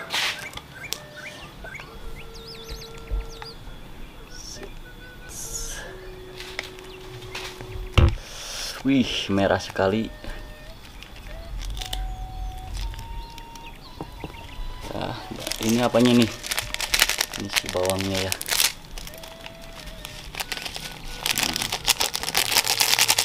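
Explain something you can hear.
A plastic sauce packet crinkles and rustles in a man's hands.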